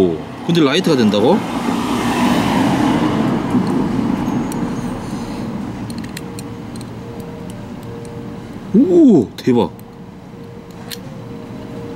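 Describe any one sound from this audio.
A metal lighter clicks and snaps open and shut.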